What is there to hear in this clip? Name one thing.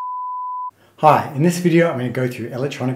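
A man speaks cheerfully and close up.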